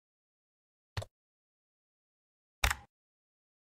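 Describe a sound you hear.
A mouse button clicks twice.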